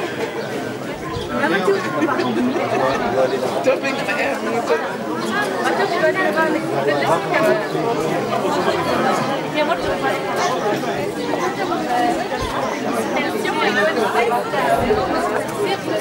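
A crowd of men, women and children chatter outdoors.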